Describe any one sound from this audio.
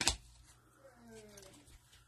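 A card is handled with a rubber glove, with a soft rustle.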